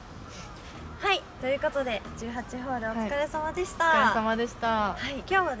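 A second young woman speaks in reply with animation.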